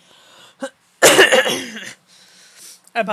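A woman laughs loudly into a close microphone.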